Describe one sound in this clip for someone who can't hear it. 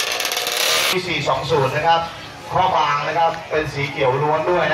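A man speaks loudly with animation through a microphone and loudspeaker.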